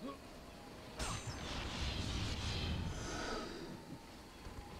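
A wooden chest bursts open with a loud shimmering rush.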